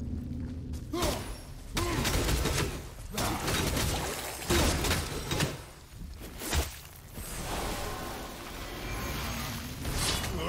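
A heavy axe strikes hard against a solid object, again and again.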